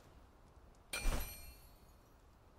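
A soft game menu sound plays as a menu opens.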